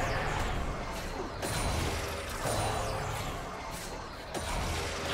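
Magic spell effects whoosh and crackle in a game battle.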